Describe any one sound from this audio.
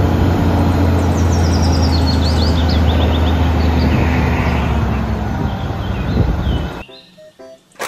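A truck's hydraulic tipper whines as the bed rises.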